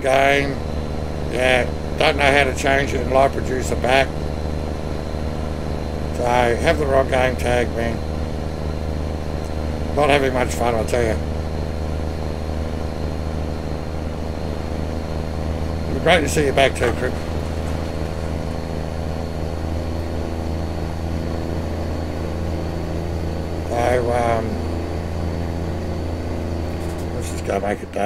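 A middle-aged man talks calmly into a close microphone, in short bursts.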